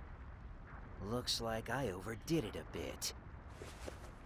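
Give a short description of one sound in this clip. A young man speaks with a smug, amused tone.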